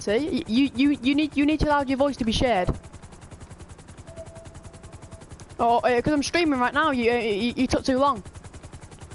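A boy talks excitedly into a headset microphone.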